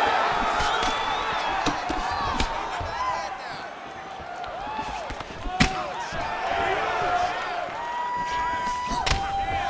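Punches and kicks thud against a body.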